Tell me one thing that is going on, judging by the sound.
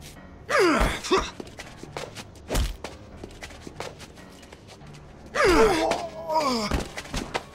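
A man grunts and groans with strain, close by.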